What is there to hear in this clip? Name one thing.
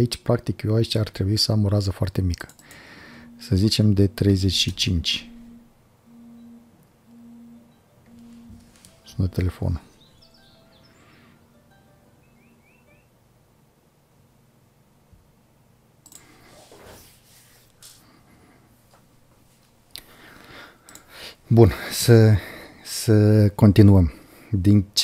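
A man speaks calmly and close to a microphone, pausing now and then.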